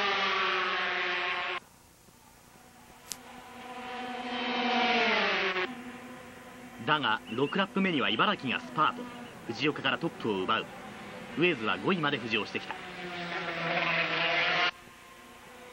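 Racing motorcycle engines whine loudly at high revs as they pass.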